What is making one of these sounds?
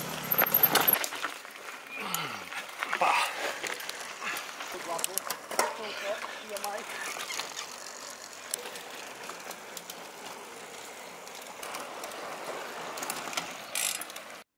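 Bicycle tyres crunch over dry dirt and gravel.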